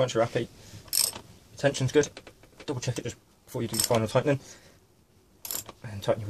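A metal wrench clicks and clanks against a bolt.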